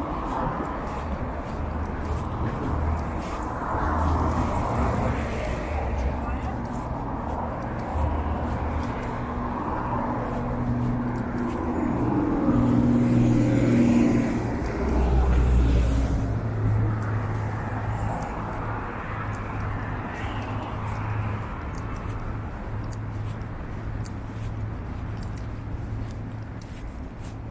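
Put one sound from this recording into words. Traffic rumbles past steadily on a slushy road.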